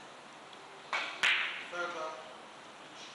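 Billiard balls click against each other and knock on the table cushions.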